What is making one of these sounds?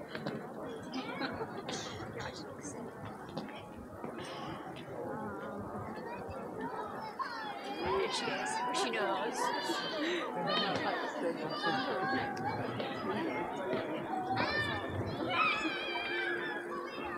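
A large crowd of people chatters and murmurs outdoors.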